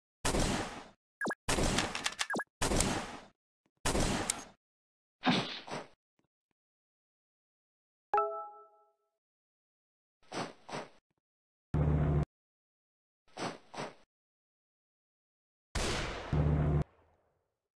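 Gunshots crack in bursts from a game's soldiers.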